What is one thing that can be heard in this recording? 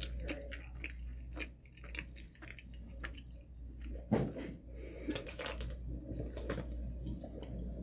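A young woman gulps down a fizzy drink.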